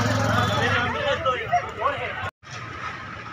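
Several people talk nearby outdoors.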